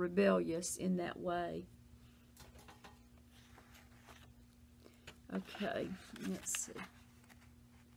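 An older woman speaks calmly and thoughtfully close to a microphone.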